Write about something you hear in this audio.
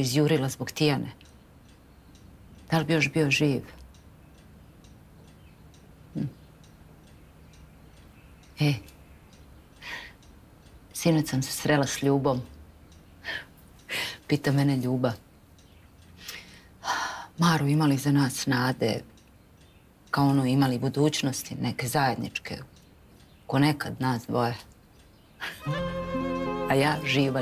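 A woman speaks nearby, calmly and with feeling.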